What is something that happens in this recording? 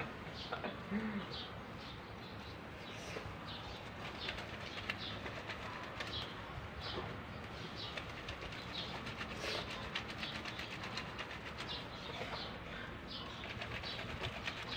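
Wet cloth squelches and swishes as hands scrub it in soapy water.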